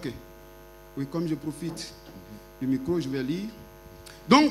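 A second man speaks back through a microphone in short bursts.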